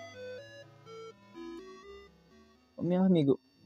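Chiptune game music plays a short melody.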